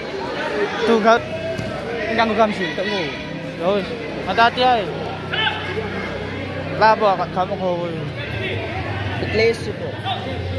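Young fighters shout sharply during the sparring.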